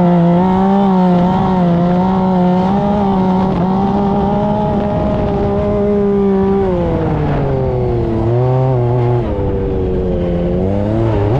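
Tyres churn through soft sand.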